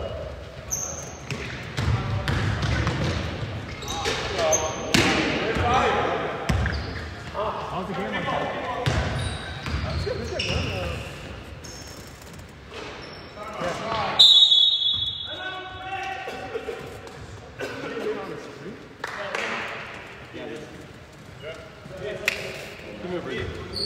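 Men shout across an echoing gym.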